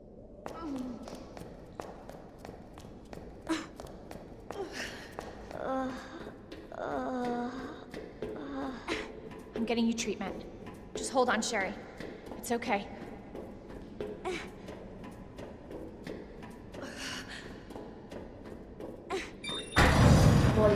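Footsteps clatter on metal stairs and a hard floor.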